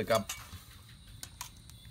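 A metal spoon scrapes a pot.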